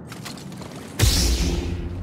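A lightsaber ignites with a loud hum.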